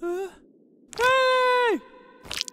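A young woman cries out loudly.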